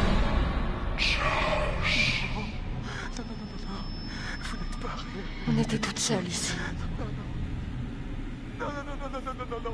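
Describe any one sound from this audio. A young man speaks in a shaky, pleading voice.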